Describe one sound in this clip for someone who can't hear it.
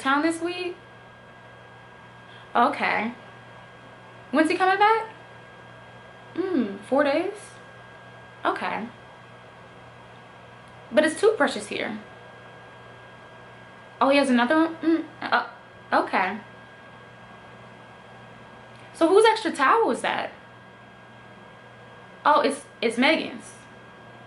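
A young woman speaks close to a microphone in short, lively phrases with pauses.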